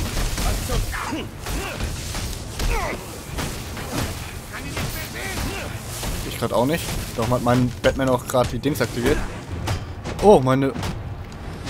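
Punches and kicks land with heavy thuds in a fast brawl.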